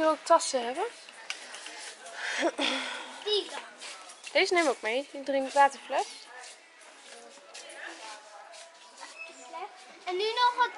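A young girl talks and squeals excitedly close by.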